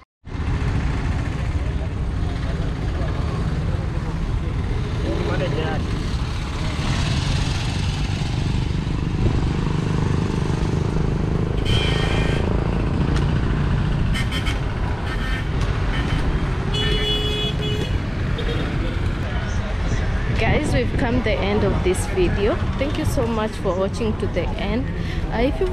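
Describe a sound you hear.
Cars and vans drive past on a nearby road.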